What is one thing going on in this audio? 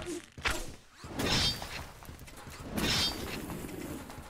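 Guns fire in rapid bursts in a video game.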